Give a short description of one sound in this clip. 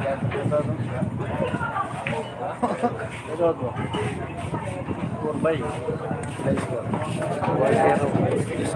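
A crowd of men chatters throughout.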